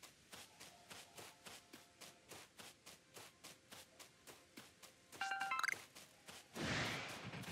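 Quick footsteps patter across grass.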